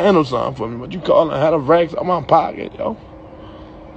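A young man talks casually close to a phone microphone.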